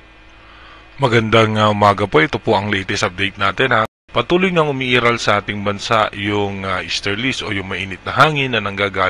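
A man speaks briskly into a microphone, like a news presenter.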